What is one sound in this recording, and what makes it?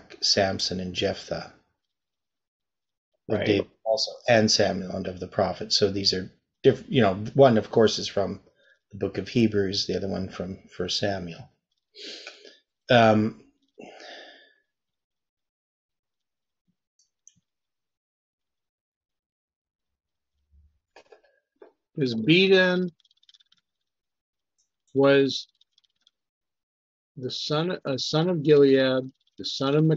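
An older man talks calmly over an online call, with pauses.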